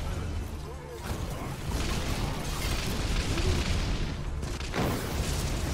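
Game traps hiss and clatter as enemies are struck.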